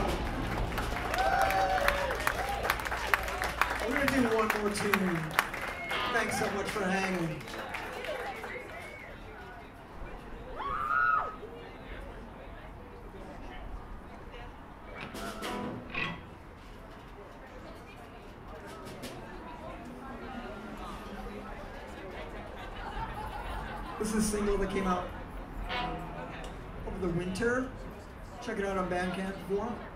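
A live rock band plays outdoors, heard from among the audience.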